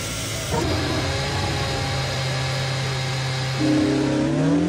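A racing car engine idles with a steady hum.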